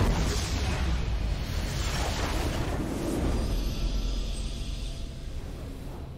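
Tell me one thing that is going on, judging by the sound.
A triumphant fanfare plays.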